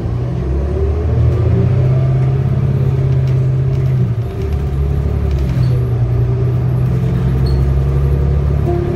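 A bus engine hums and rumbles steadily as the bus drives along.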